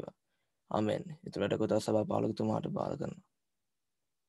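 A young man speaks calmly into a close microphone.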